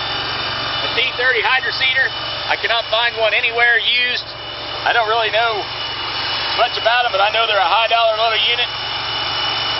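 A man talks close by, outdoors, with animation.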